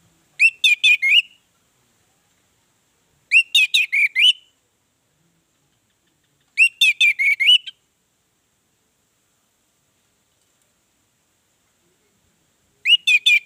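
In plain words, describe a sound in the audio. An orange-headed thrush sings short bursts of clear, whistled phrases.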